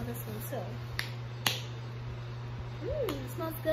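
A plastic bottle clicks as a young woman handles it.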